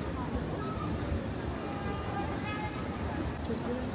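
Cars drive past on a wet street.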